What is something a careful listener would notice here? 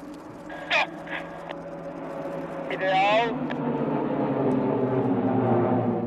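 Several propeller planes roar by overhead.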